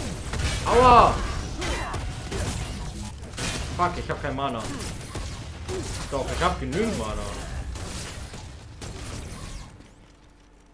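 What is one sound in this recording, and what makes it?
Weapons fire in rapid bursts with crackling energy blasts.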